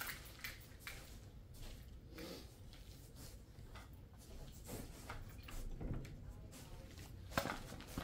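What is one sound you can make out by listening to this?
Footsteps shuffle softly on carpet.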